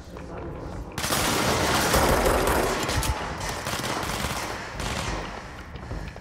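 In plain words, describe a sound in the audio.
A loud blast crashes and roars, with debris scattering.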